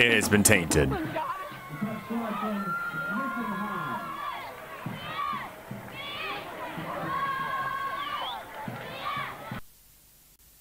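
A crowd cheers and applauds outdoors.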